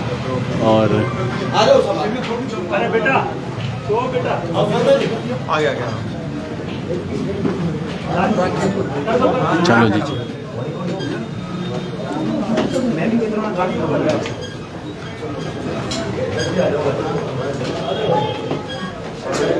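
A crowd of men talk and shout over each other close by.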